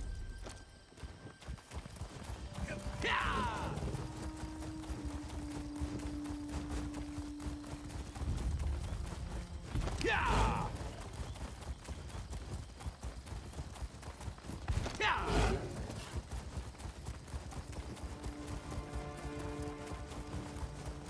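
Hooves pound steadily as a mount gallops.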